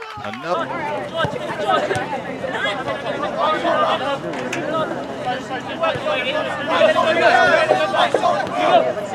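A soccer ball is kicked with a dull thump.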